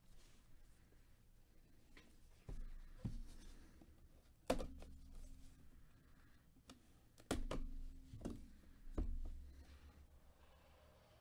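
A cardboard box is handled and set down on a table with dull knocks.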